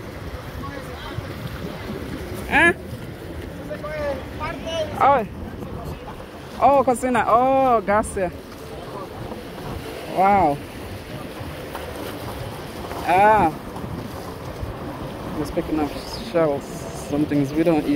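Small waves lap and splash in shallow water.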